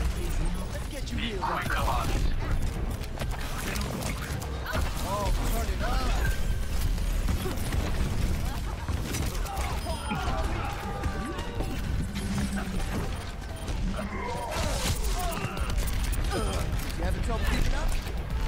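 A game weapon fires rapid bursts of energy shots.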